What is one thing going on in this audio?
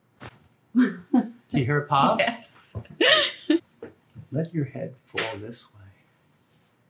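A woman laughs and squeals nearby.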